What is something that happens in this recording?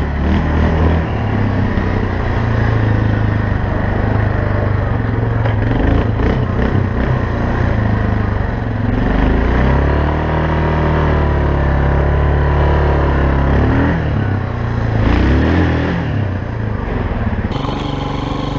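A quad bike engine drones and revs up and down close by.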